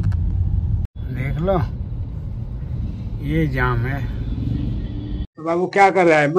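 A man speaks briefly inside a car.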